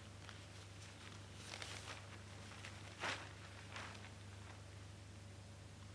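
A newspaper's pages rustle.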